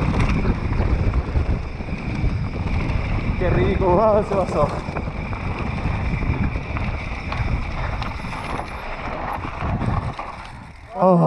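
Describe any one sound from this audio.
Bike tyres rumble and rattle over a rough dirt trail.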